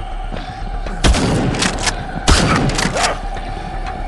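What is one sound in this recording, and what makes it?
A shotgun fires loud booming blasts.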